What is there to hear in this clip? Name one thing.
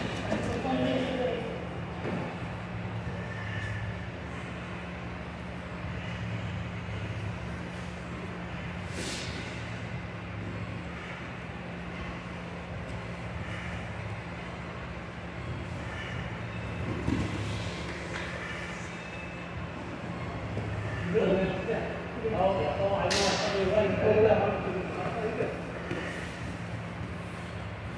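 Bodies thump and shuffle on a padded mat.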